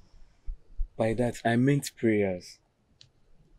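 A young man speaks in a low voice close by.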